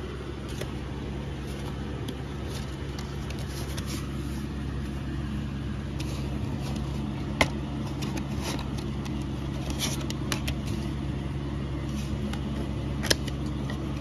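A paper booklet rustles as its pages are turned.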